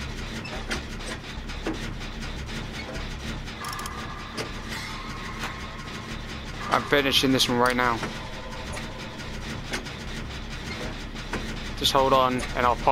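A generator engine hums and rattles steadily.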